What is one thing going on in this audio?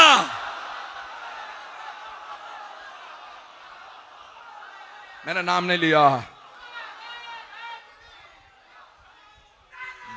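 A middle-aged man laughs into a microphone.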